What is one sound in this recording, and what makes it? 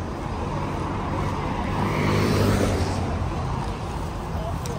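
A car passes slowly nearby.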